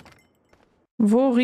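A young woman speaks into a close microphone.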